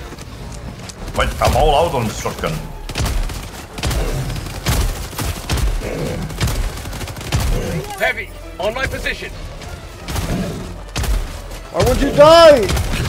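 Rifle gunfire rattles in rapid bursts.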